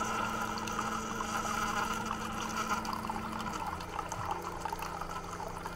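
Coffee pours in a thin stream into a cup.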